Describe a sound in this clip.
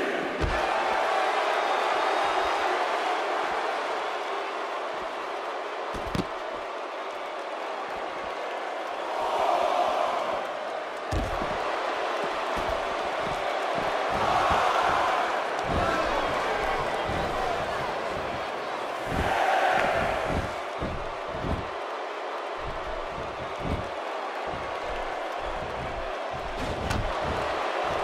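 Bodies slam heavily onto a ring mat.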